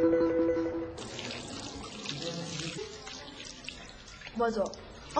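Water runs from a tap over hands.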